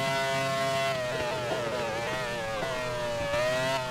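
A racing car engine drops in pitch as the car slows for a corner.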